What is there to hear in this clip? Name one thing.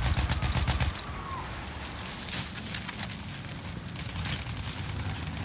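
Rifle shots crack in bursts.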